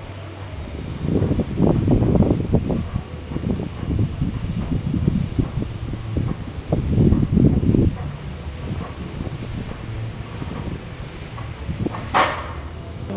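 A weighted sled scrapes and rumbles across artificial turf.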